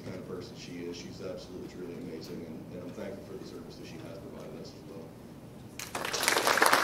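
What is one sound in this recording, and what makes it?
A man speaks calmly over a loudspeaker in a large echoing hall.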